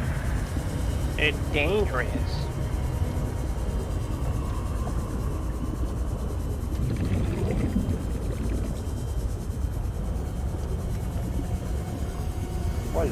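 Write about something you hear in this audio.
A submarine engine hums low and steady underwater.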